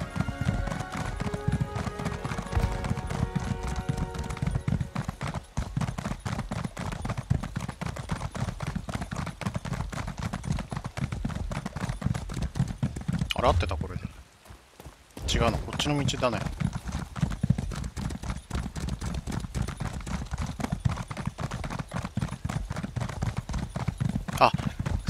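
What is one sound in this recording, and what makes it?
Footsteps run quickly over a dirt and stone path.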